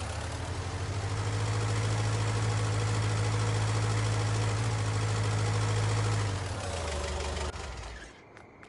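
A forklift engine drones steadily and then winds down.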